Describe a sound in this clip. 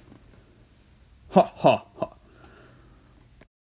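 A small plastic toy taps down on a wooden shelf.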